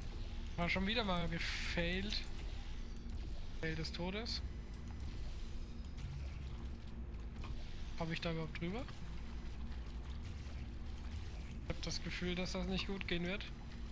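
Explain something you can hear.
Gel splatters wetly onto surfaces.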